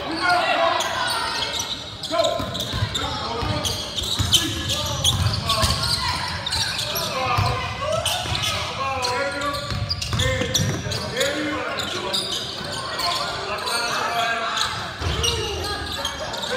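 Sneakers squeak on a wooden floor.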